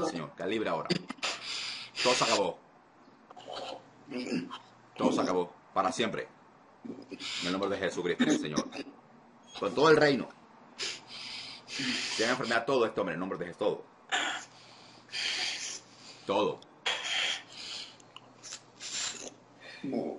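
A young man speaks emotionally over an online call, his voice breaking as if crying.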